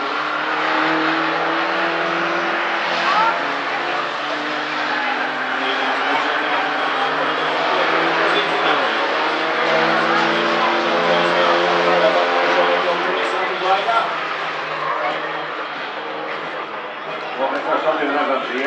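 A racing car engine roars loudly as the car speeds around a track.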